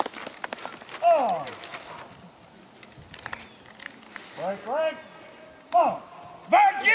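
A man shouts commands outdoors.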